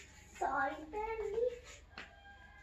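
A young girl speaks briefly in a high voice, close by.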